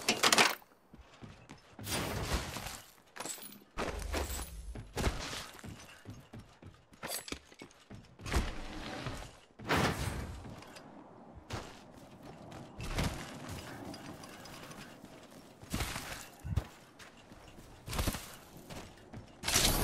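Footsteps thud quickly across hard floors and grass.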